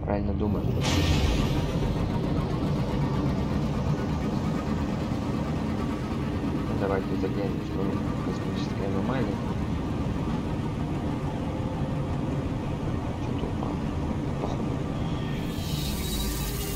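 A spaceship engine hums and rumbles steadily.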